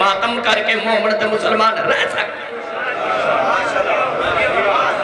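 A man speaks passionately into a microphone, heard through loudspeakers.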